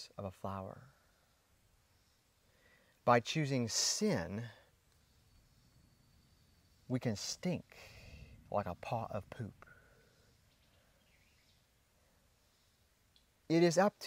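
A young man talks animatedly, close to a small microphone, with pauses.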